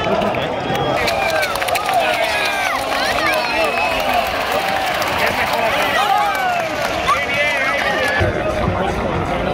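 A large stadium crowd cheers and shouts.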